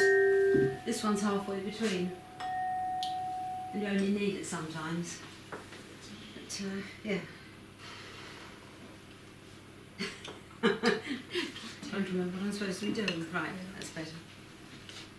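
An elderly woman speaks to a small group, close by.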